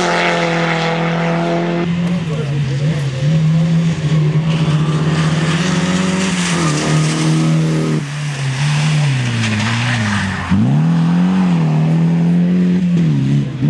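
A rally car engine revs hard and roars past.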